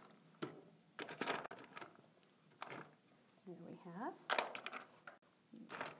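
A middle-aged woman talks calmly, close to a microphone.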